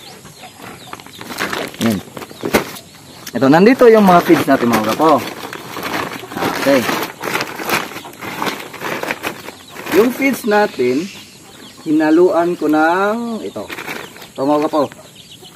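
A plastic sack crinkles and rustles as it is opened.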